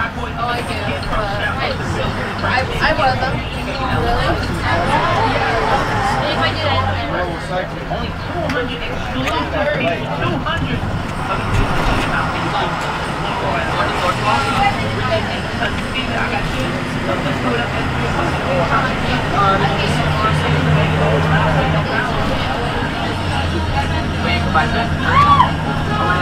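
A bus engine rumbles and drones steadily while driving.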